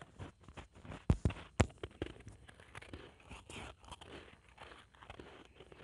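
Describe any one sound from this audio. A young woman crunches ice loudly close up.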